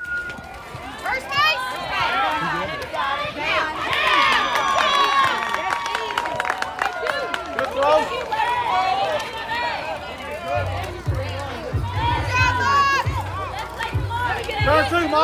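A crowd of adults and children cheers and shouts outdoors.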